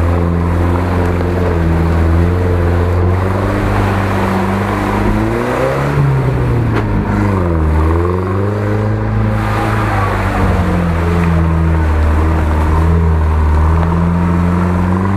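An off-road truck engine roars and revs, rising and falling in pitch.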